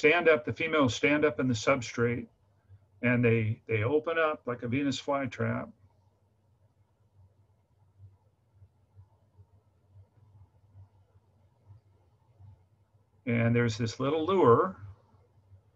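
A middle-aged man speaks calmly through an online call.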